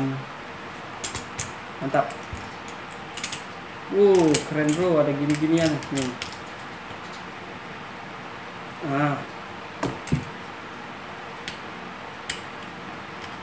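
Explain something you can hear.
Plastic parts of a tripod click and knock as they are adjusted.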